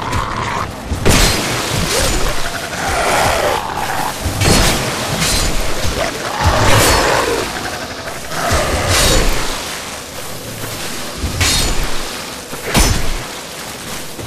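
Weapons clang and strike hard in a fight.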